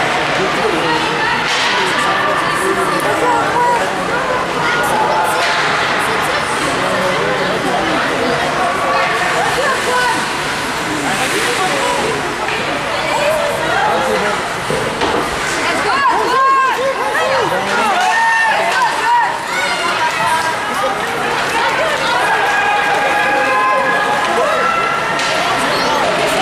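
A crowd of spectators chatters and cheers in a large echoing rink.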